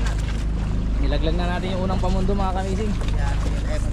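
A man calls out on a boat.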